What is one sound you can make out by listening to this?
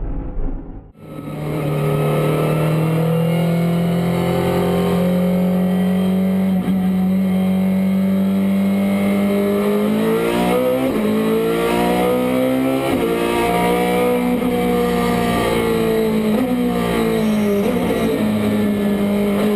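A race car engine roars loudly from inside the cabin, shifting up and down through the gears.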